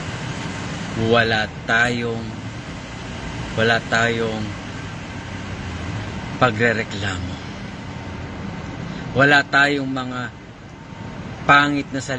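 A middle-aged man speaks close to a phone microphone in short bursts, with pauses.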